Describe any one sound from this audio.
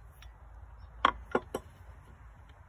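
A blade clanks down onto a wooden board.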